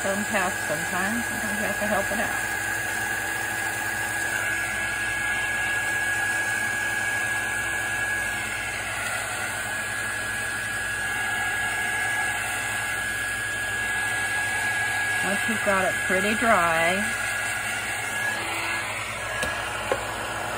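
A heat gun blows with a steady whirring hum.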